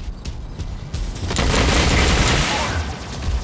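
A volley of rockets launches with a loud rushing roar.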